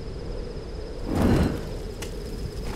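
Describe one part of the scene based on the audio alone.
A fire suddenly flares up with a whoosh.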